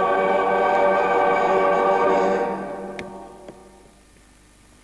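A group of men and women sings together in a large hall, and the singing fades away.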